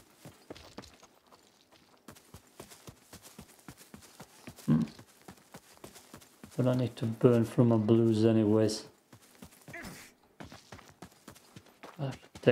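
Footsteps patter quickly over dry ground.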